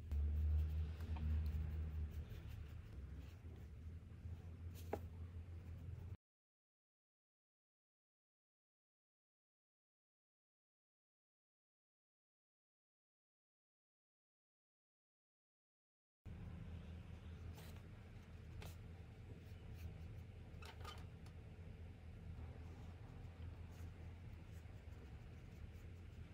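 A paintbrush strokes across paper.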